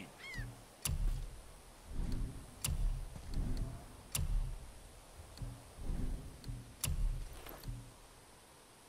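Game menu selections click with soft low thuds.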